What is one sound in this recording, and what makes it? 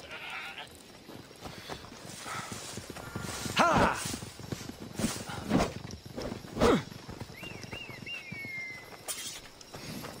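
Footsteps crunch on dirt and stones.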